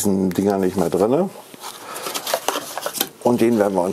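A cardboard box scrapes and rustles as it is moved.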